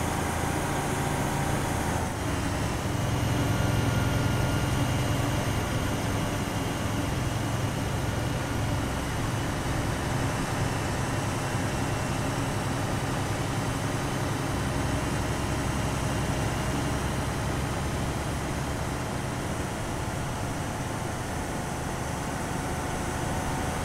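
An armoured vehicle's engine rumbles steadily as it drives along a road.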